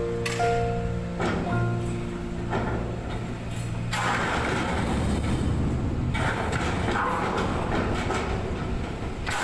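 A crane's machinery whines and hums steadily.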